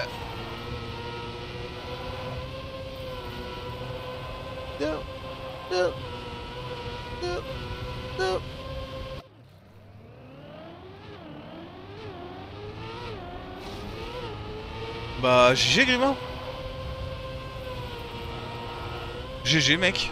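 A racing car engine hums steadily and revs up and down.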